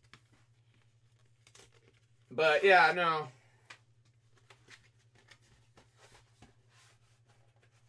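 Paper sheets rustle and flip in a man's hands.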